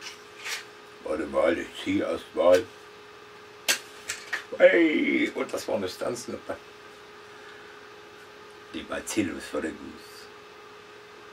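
A man talks close by, in a casual manner.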